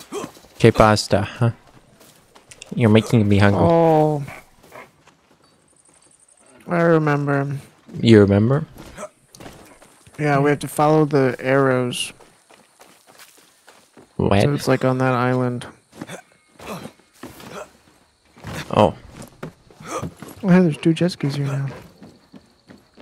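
A young man talks casually and animatedly into a close microphone.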